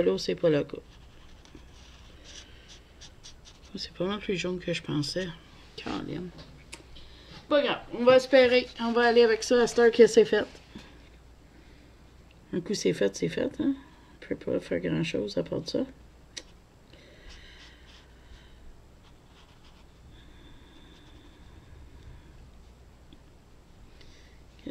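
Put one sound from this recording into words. A felt marker scratches softly across paper.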